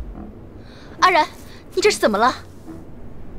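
A young woman calls out anxiously.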